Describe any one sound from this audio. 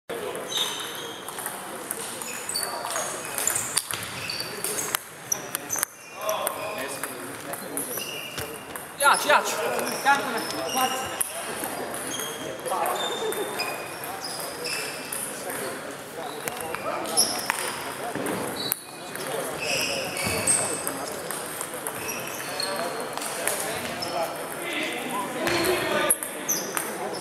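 A table tennis ball clicks back and forth between paddles and the table in a large echoing hall.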